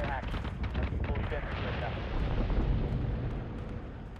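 Explosions boom in the distance.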